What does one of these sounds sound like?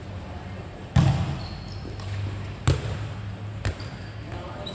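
A ball is kicked hard with loud thuds that echo around a large covered hall.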